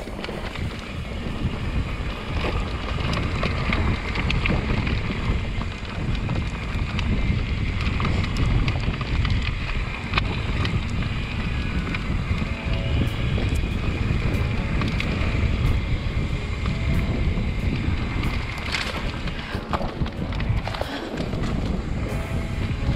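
Bike tyres roll and crunch over a dry dirt trail.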